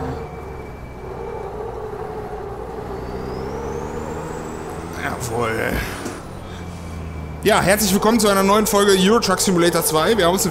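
A truck engine drones steadily and rises in pitch as it speeds up.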